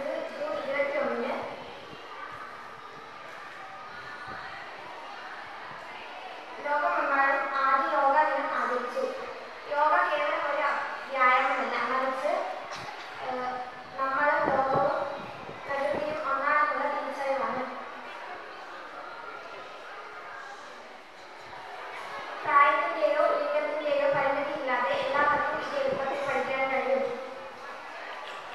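A girl speaks clearly into a microphone through a loudspeaker in an echoing hall.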